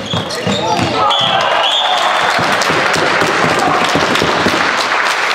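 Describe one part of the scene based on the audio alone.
A crowd cheers and applauds after a goal.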